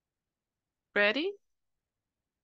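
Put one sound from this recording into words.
A woman says a few words briefly through an online call.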